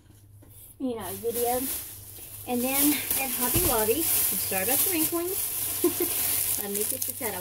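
A plastic bag crinkles and rustles loudly.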